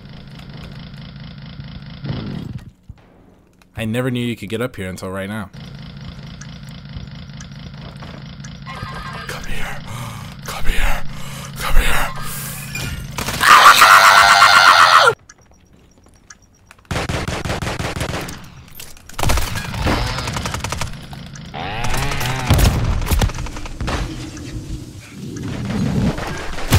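A chainsaw engine idles and revs loudly.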